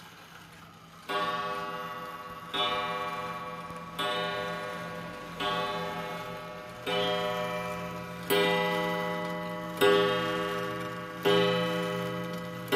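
A mechanical pendulum wall clock ticks.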